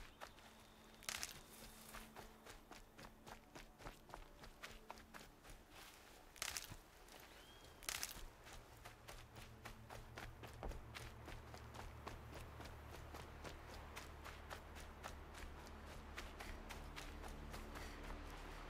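Footsteps crunch quickly over grass and rocky ground.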